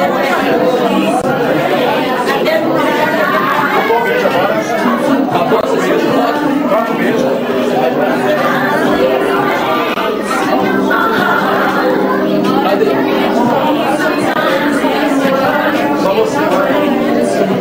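Several adults chatter and talk close by.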